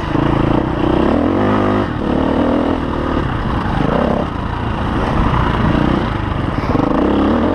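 A dirt bike engine revs loudly up close, rising and falling as it climbs.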